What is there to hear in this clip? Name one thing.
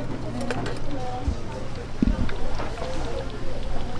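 A woman talks nearby.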